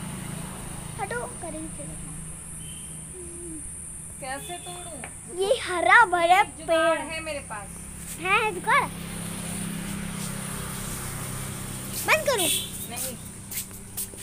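A young woman talks close by, in short bursts.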